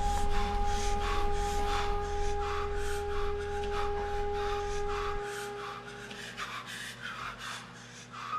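A young woman pants in fast, frightened gasps close by.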